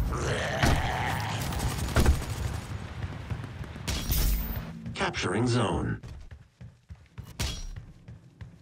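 A gun fires sharp, echoing shots.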